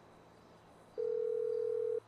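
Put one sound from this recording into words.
A phone plays a steady ringing tone.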